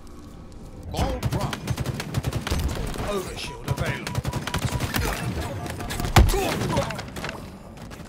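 Rifle fire crackles in rapid bursts in a video game.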